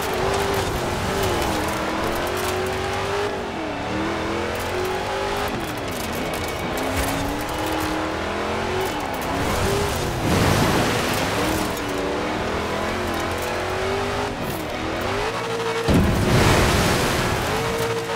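Tyres crunch and hiss on gravel and dirt.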